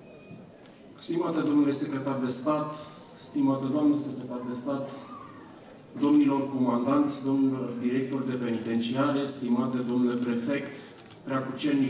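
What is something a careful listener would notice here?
A man speaks calmly into a microphone over a loudspeaker, outdoors.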